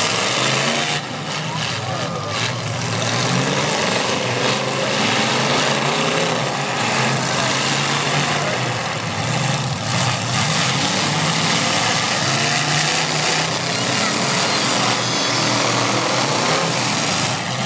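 Car engines roar and rev loudly outdoors.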